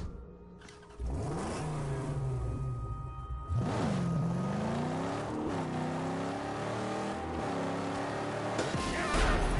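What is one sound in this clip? A car engine starts and roars, revving up and down.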